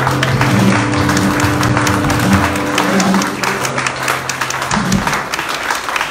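A jazz band plays a closing chord.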